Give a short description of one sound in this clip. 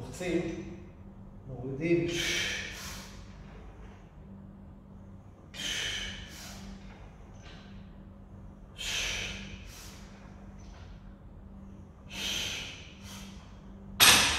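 A man exhales sharply with each pull.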